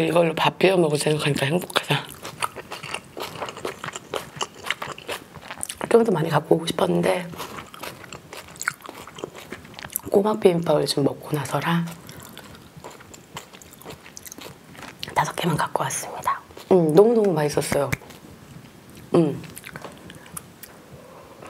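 A young woman chews food with crisp, wet mouth sounds.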